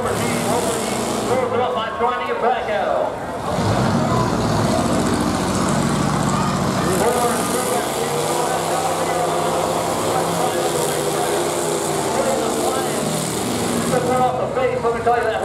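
Metal crunches as cars crash into each other.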